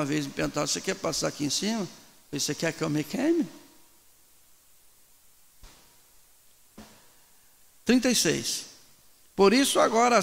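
A middle-aged man preaches with animation into a microphone, in bursts with pauses.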